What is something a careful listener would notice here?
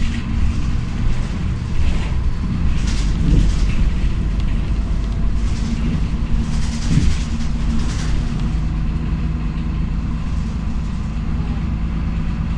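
A bus interior rattles and creaks over bumps.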